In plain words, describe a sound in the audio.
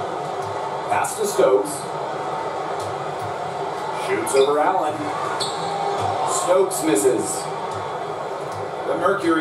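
Sneakers squeak sharply on a basketball court.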